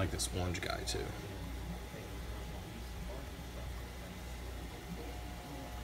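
Air bubbles gurgle steadily in water.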